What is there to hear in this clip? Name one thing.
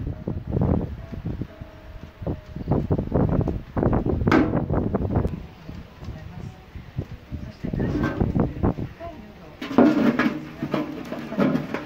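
Thin sheet metal clatters and knocks as it is handled.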